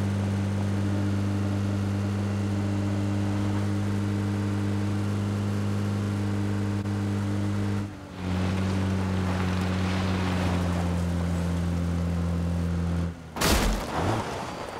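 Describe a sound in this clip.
Tyres rumble and rustle over grass and dirt.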